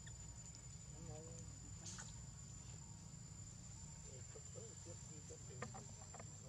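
A baby monkey squeaks faintly.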